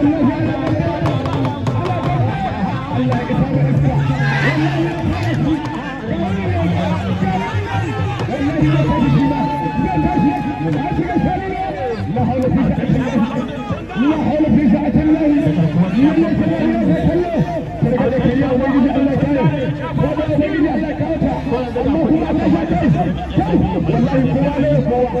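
A large outdoor crowd chatters and calls out loudly.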